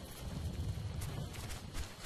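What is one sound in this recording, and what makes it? Rifle shots crack in short bursts.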